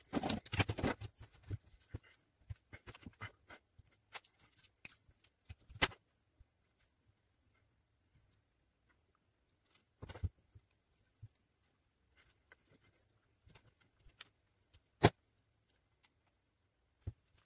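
Wires rustle and tap against a tabletop as hands handle them.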